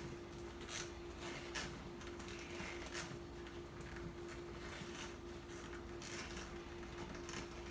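Rubber gloves rustle and creak as stiff wires are twisted together close by.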